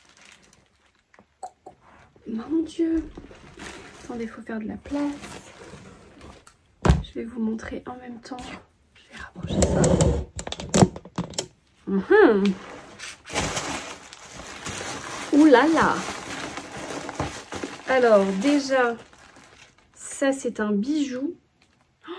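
Cardboard and paper rustle as a box is opened.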